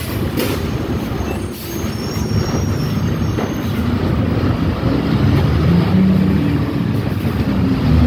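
A car engine rumbles steadily from inside a moving car.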